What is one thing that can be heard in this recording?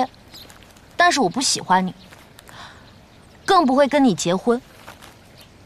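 A young woman speaks firmly, close by.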